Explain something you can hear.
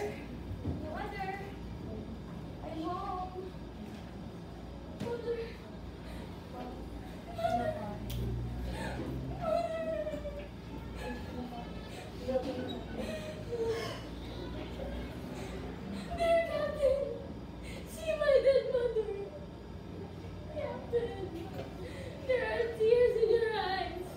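A young girl speaks with animation in a room with a slight echo.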